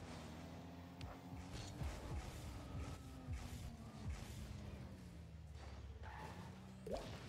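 A game car's rocket boost whooshes in short bursts.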